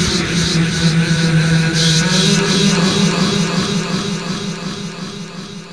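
A man sings through a microphone.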